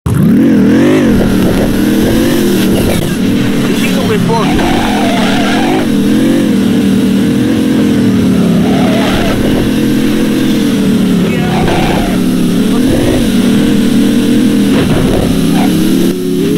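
Car tyres squeal and skid on the road.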